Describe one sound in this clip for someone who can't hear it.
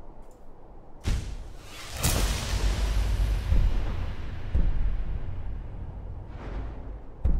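A deep magical whoosh swells and slowly fades.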